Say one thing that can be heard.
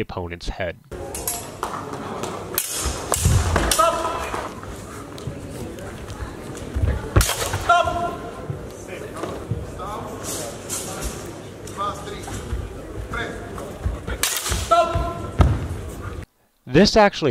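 Swords clash and clatter in a large echoing hall.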